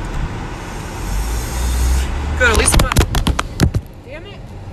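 A car engine revs up as the car pulls away.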